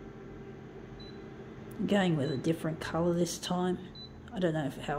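A copier beeps briefly when its touchscreen is pressed.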